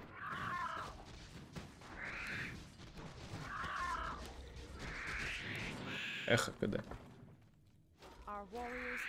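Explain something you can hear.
Magic spell effects whoosh and chime.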